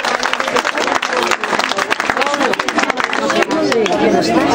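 A crowd claps hands rapidly and rhythmically.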